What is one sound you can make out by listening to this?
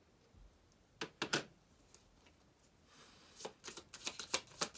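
Playing cards shuffle and snap together.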